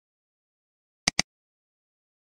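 A mouse clicks twice quickly.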